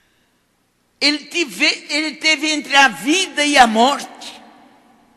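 An elderly woman speaks with animation through a microphone in a reverberant hall.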